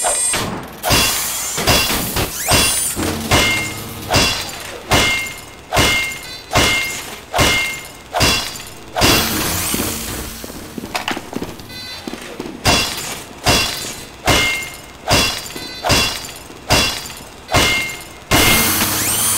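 A wrench strikes metal with sharp, ringing clangs in a steady rhythm.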